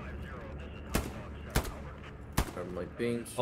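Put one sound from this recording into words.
A rifle fires a few sharp shots.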